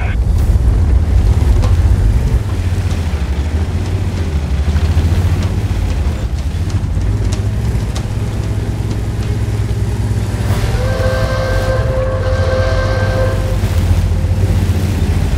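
A heavy tank engine rumbles and roars steadily.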